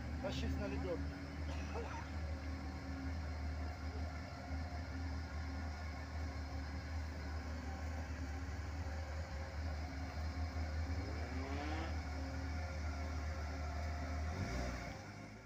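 An engine rumbles and strains steadily.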